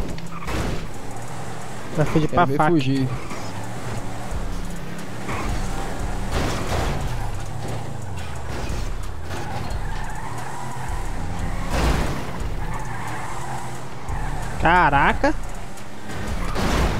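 A car engine hums and revs as it drives.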